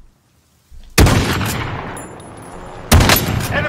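A rifle fires loud shots.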